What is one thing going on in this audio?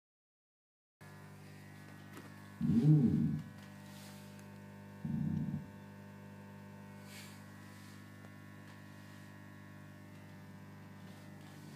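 An amplifier hums steadily.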